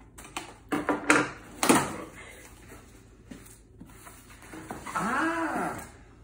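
Cardboard rustles and tears as a box is opened.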